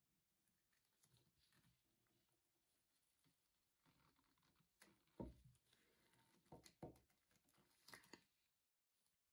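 A metal blade scrapes and knocks against a plate.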